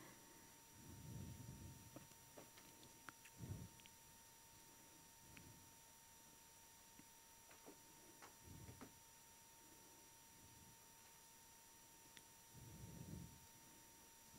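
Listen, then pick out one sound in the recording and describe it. Paper rustles faintly.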